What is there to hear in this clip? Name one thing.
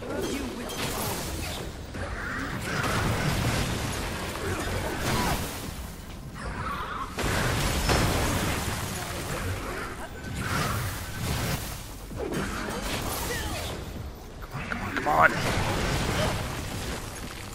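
Weapons clash and slash in a fast fight.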